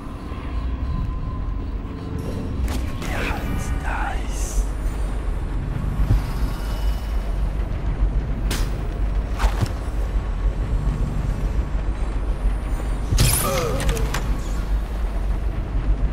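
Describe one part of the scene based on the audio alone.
Footsteps creak and thud on wooden floorboards.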